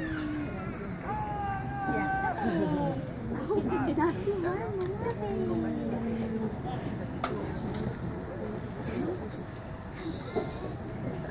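Men and women in an outdoor crowd chatter nearby.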